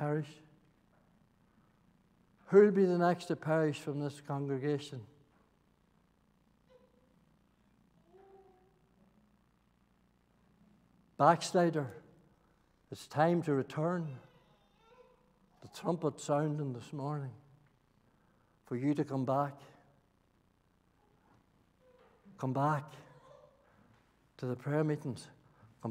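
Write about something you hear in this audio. An elderly man speaks slowly and deliberately through a microphone, with long pauses.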